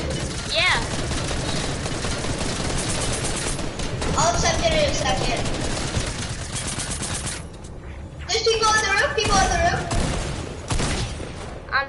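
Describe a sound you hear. Gunshots crack in quick bursts from a video game.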